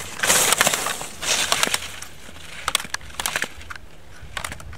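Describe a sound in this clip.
Skis scrape and hiss across hard snow in bursts as a skier turns.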